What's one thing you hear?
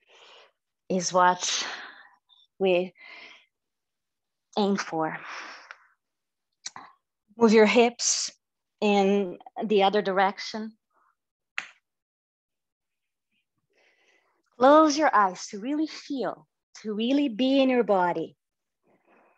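A woman speaks calmly through a microphone, guiding breathing and movement.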